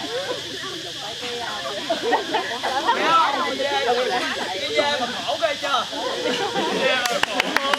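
Young men and women laugh nearby.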